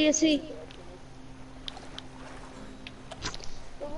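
Water sloshes around legs wading through a pond.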